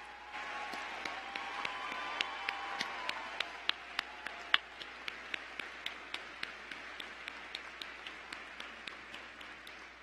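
A crowd claps hands in a steady rhythm.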